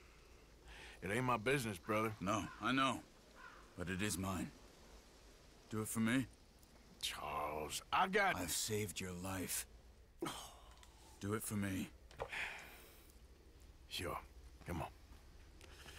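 A man speaks in a low, gravelly voice, close by.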